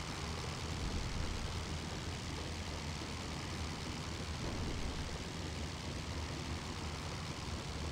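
A biplane's propeller engine drones steadily at idle.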